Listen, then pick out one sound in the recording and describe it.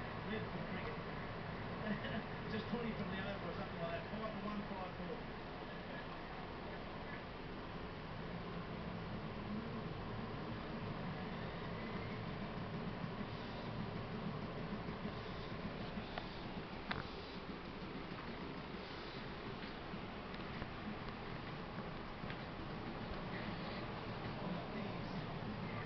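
A cat purrs softly close by.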